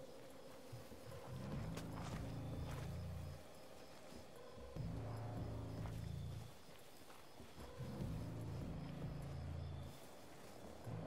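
Footsteps rustle softly through grass and brush.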